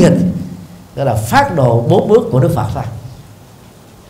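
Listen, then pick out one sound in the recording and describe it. A middle-aged man speaks calmly and warmly into a microphone.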